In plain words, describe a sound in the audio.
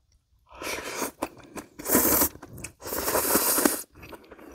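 A woman chews food noisily.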